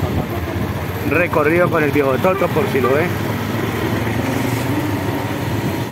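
A motorcycle engine hums steadily nearby.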